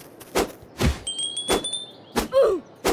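A game chimes as points are earned.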